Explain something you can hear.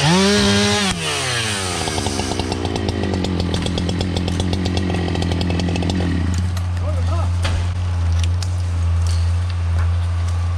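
A chainsaw idles with a low sputter after being let off.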